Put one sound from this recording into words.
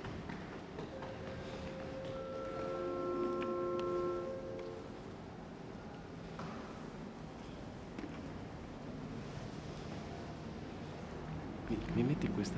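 A choir sings long held notes in a large echoing hall.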